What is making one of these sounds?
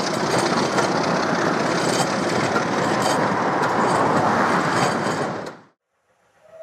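A train rolls along the tracks with a steady rumble.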